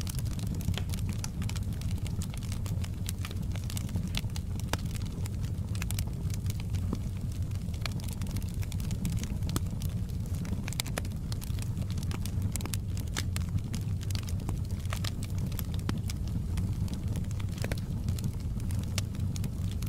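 Burning wood crackles and pops sharply.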